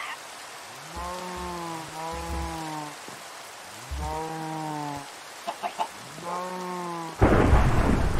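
Cows moo close by.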